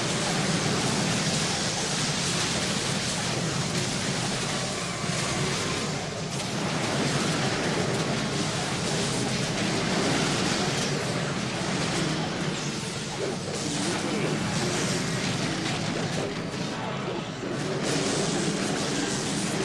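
Spell blasts and weapon hits crash and crackle in a busy battle.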